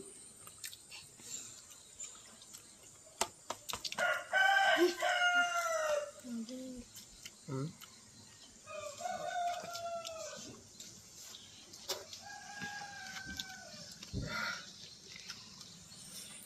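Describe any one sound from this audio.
A boy chews and smacks his lips while eating.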